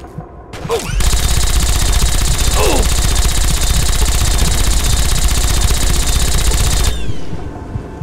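A laser weapon fires with a steady, loud, crackling roar.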